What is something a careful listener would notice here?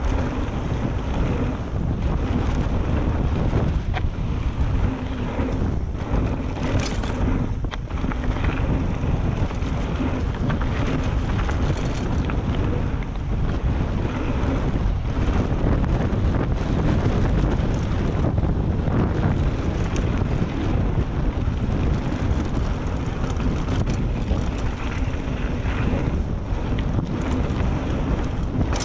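Bicycle tyres crunch and rattle over a loose dirt and gravel trail.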